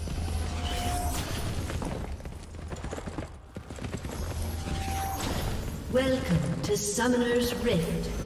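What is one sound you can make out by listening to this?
Fantasy combat effects whoosh and clash.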